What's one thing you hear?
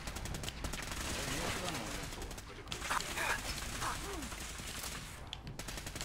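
A laser rifle fires rapid crackling shots.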